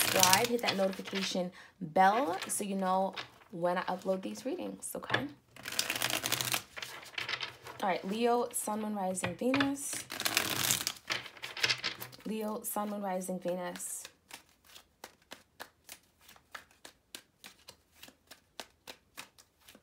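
Playing cards shuffle and riffle between hands.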